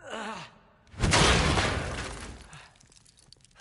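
A heavy crash booms and rumbles, slowly fading.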